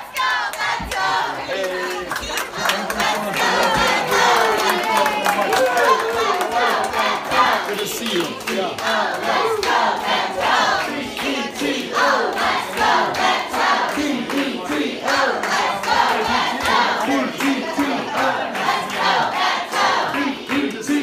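A crowd of men and women chatter and call out all around, close by in an echoing room.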